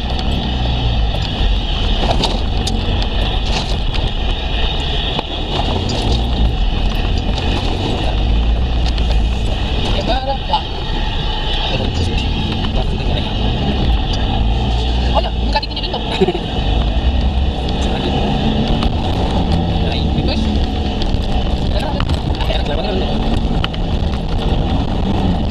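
A car engine drones, heard from inside the car.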